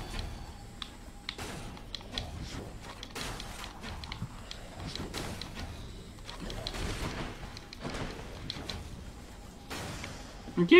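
Sharp weapon slashes and impacts clatter rapidly in a video game.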